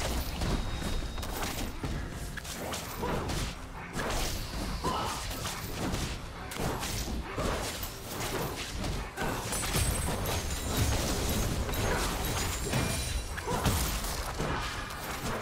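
Game spells and weapons clash and burst in rapid succession.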